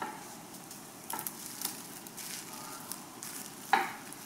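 Crumbly mince tumbles from a glass dish into a pan with soft thuds.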